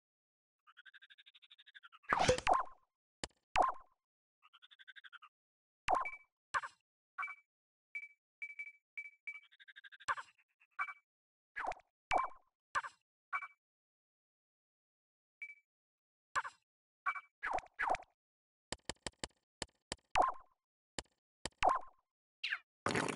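Short electronic blips and clicks from a game menu sound again and again.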